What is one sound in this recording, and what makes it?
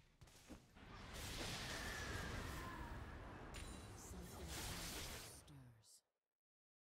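An icy magic blast whooshes and shatters.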